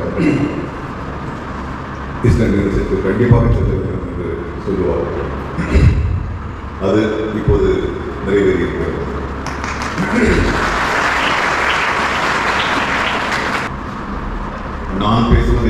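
An elderly man speaks with animation through a microphone and loudspeakers in a large echoing hall.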